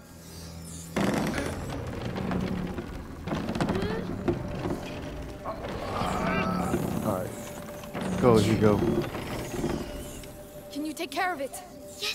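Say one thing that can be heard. A wooden crank handle creaks as it is turned.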